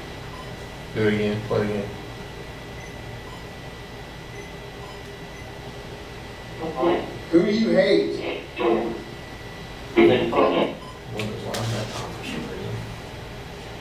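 A man speaks calmly nearby in short bursts.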